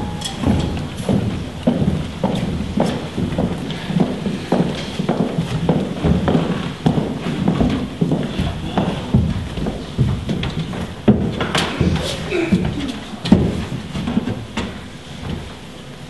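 Footsteps thud on a wooden stage.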